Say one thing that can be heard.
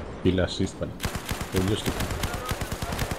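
A machine gun fires rapid bursts.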